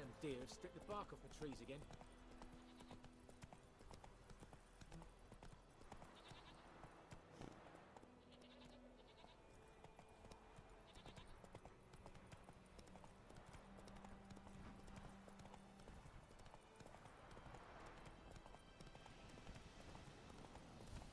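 Horse hooves thud steadily on a dirt track.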